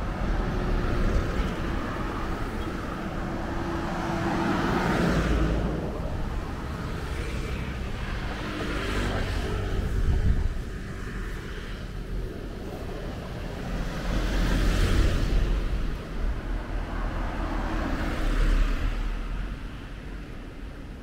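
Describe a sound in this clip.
Cars and trucks drive past on a road outdoors, each swelling and fading.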